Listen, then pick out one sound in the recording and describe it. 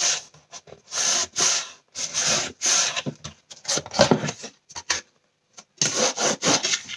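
Hands rub and press on cardboard.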